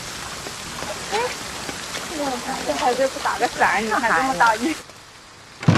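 A woman speaks with concern nearby.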